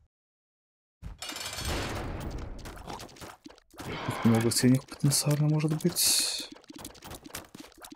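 Video game sound effects of shots and hits play in quick bursts.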